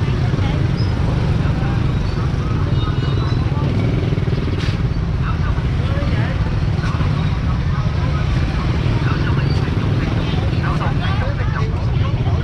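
A motorbike engine rumbles steadily at close range.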